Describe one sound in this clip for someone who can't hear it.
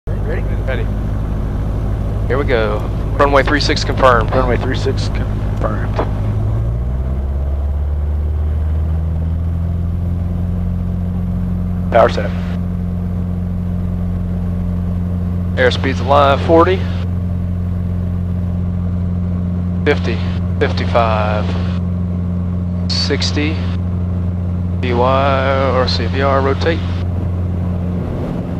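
A small plane's propeller engine drones loudly and rises in pitch as it speeds up.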